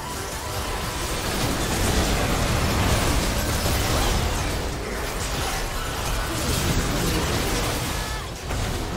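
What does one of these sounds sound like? Magic spells crackle and boom in a busy battle.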